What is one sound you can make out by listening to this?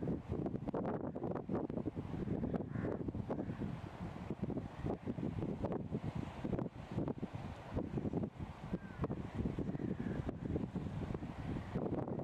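A river rushes and splashes nearby.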